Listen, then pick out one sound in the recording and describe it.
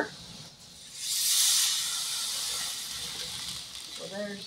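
Liquid pours into a hot pan and sizzles loudly.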